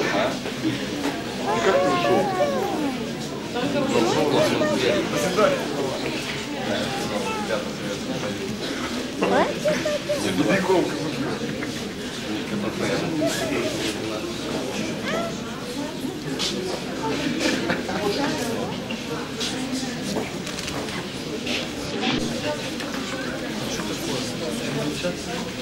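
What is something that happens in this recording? A crowd of men and women chatters close by in an echoing hall.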